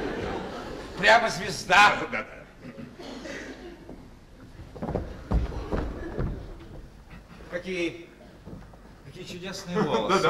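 A man speaks with animation on a stage, heard from a distance.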